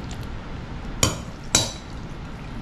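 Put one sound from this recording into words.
A metal spoon clinks twice against a glass dish.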